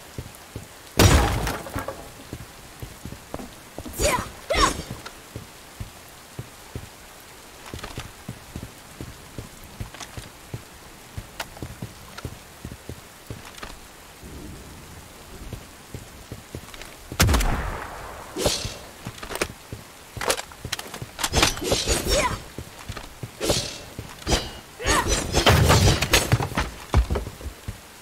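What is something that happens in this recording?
Wooden crates smash and splinter with a loud crash.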